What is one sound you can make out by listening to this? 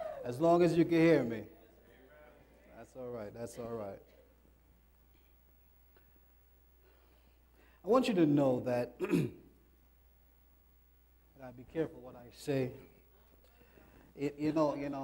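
A man speaks with animation into a microphone, with pauses between phrases.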